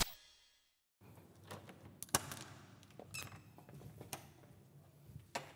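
Faint knocks and taps sound close by in a quiet room.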